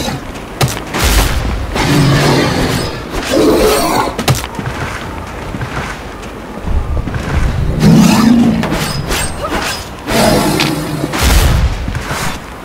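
Heavy blows land with deep thuds.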